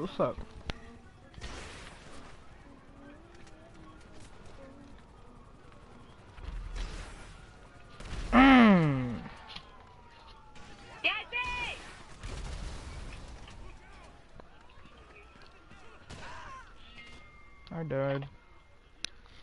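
A helicopter explodes with a loud blast.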